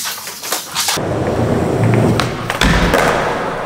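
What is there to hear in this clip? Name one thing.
A skateboard grinds along a metal rail.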